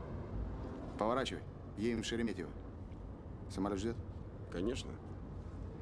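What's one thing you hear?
A middle-aged man speaks in short bursts.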